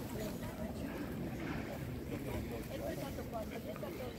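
A crowd murmurs nearby.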